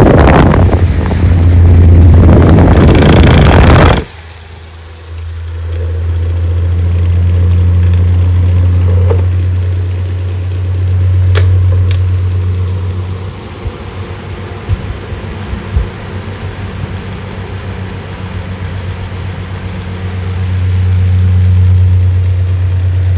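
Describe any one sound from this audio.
An electric fan motor hums steadily.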